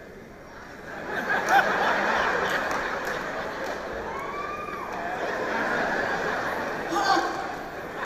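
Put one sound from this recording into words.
An audience laughs and cheers.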